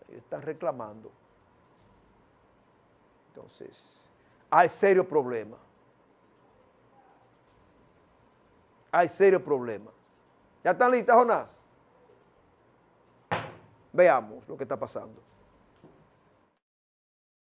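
A man speaks with emphasis into a microphone, in short bursts with pauses.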